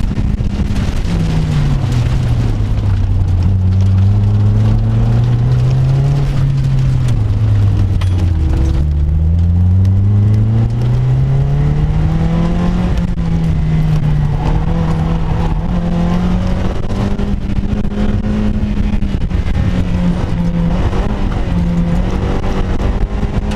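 A car engine revs up and down loudly as the car accelerates and brakes.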